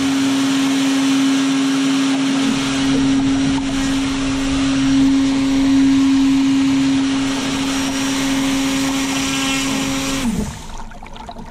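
A small propeller motor buzzes steadily close by, then winds down and stops.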